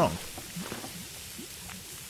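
Meat sizzles quietly in a hot pan.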